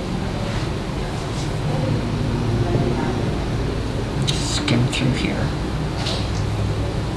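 A man speaks calmly, heard from a distance through a room microphone.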